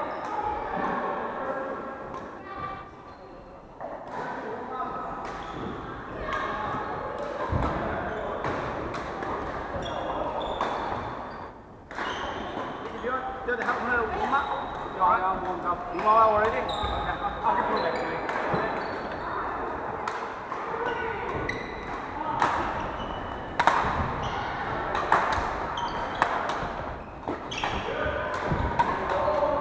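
Several people talk and call out in a large echoing hall.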